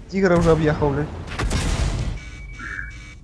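A shell explodes nearby with a heavy blast.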